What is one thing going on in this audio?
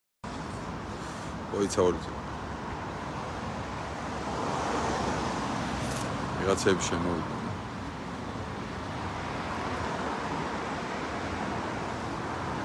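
Cars pass on a nearby road.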